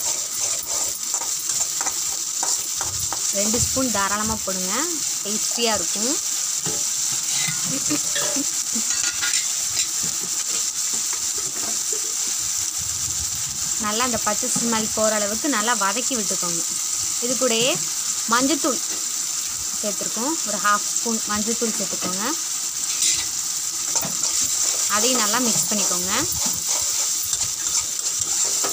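A metal spoon scrapes and stirs in a pan.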